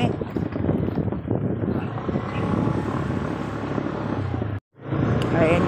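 A woman talks close by, outdoors in wind.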